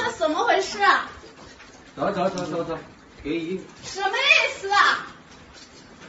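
A woman shouts and cries out in distress nearby.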